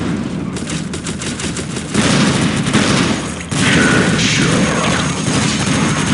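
A submachine gun fires in short bursts.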